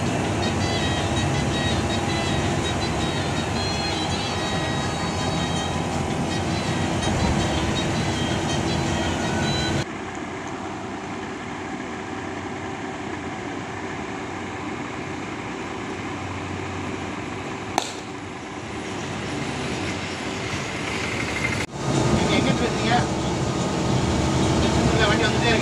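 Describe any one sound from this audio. A car engine hums steadily while driving on a road.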